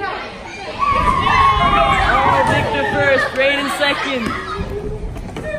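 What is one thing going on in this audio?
Children shout and squeal excitedly nearby.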